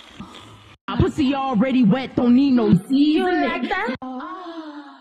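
A young woman raps rhythmically into a close microphone.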